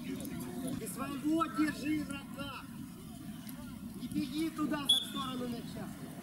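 Men call out to each other from a distance outdoors.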